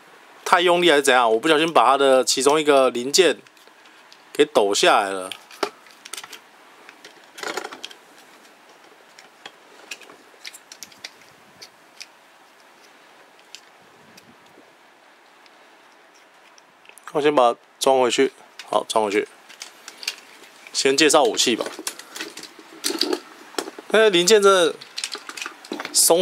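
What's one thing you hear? Small plastic parts click and snap close by.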